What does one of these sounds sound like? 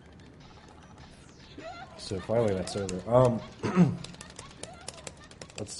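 Controller buttons click rapidly.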